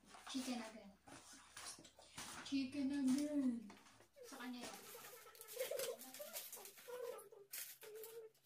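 A cardboard food box rustles and crinkles as it is opened.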